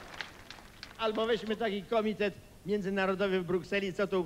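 An elderly man speaks animatedly through a microphone in a large hall.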